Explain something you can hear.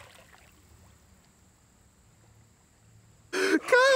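Water gurgles and sloshes softly close by.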